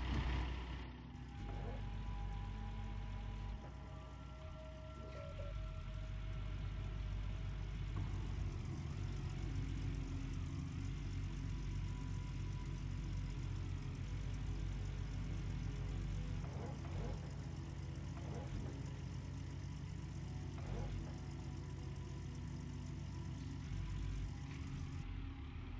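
A diesel excavator engine idles and rumbles steadily.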